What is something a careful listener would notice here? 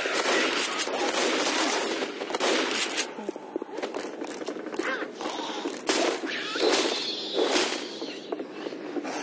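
Shotgun blasts boom loudly, again and again.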